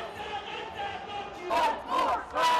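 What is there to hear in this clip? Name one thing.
A crowd murmurs and talks as it walks along a street.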